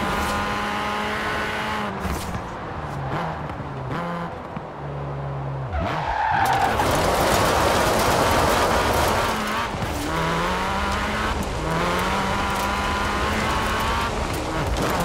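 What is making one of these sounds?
A car engine roars, dropping in pitch as the car slows, then revving up again through the gears.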